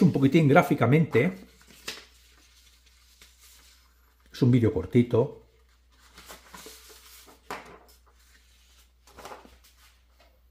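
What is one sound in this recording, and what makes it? Sheets of paper rustle and slide as they are handled.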